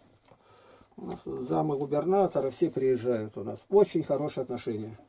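An elderly man speaks calmly and closely.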